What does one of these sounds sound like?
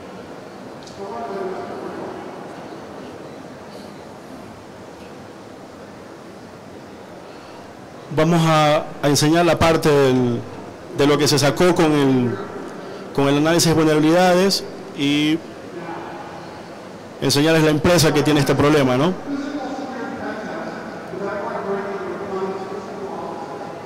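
A man speaks through a microphone and loudspeakers in a large hall.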